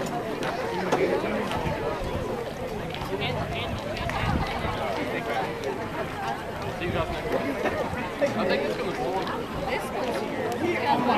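A crowd of people chatters outdoors from a distance.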